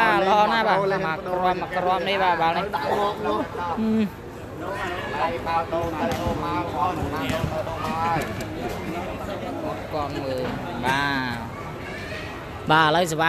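A large crowd murmurs and calls out in an echoing hall.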